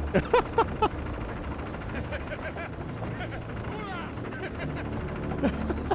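A young man speaks in a low, mocking voice.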